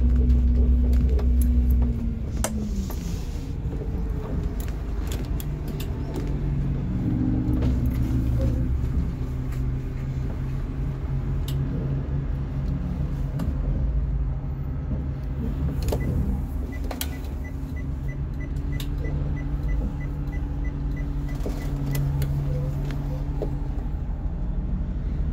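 A large vehicle's engine rumbles steadily from inside as it drives slowly.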